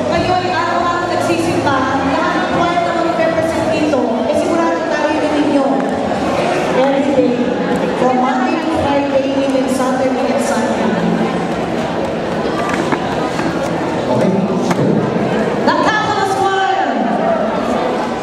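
A group of young men and women sing together in an echoing hall.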